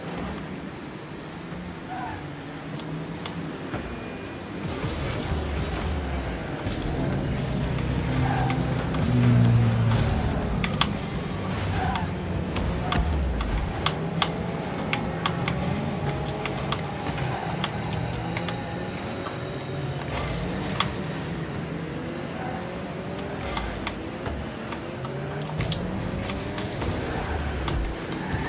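A game car's engine hums and revs steadily.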